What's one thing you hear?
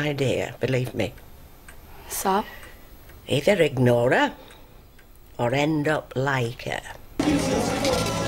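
A young woman speaks quietly and upset.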